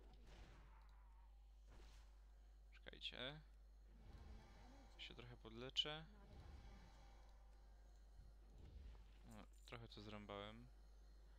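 Magic spells whoosh and chime in short bursts.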